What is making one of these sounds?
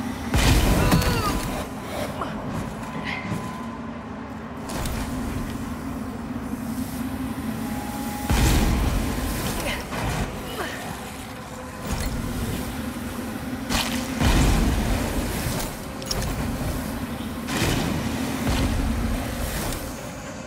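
A heavy blade swings and whooshes through the air.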